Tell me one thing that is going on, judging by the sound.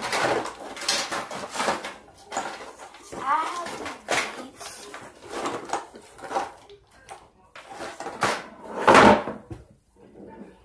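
Objects clatter as a girl rummages beside a table.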